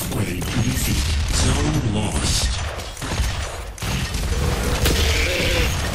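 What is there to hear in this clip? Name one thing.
Video game guns fire.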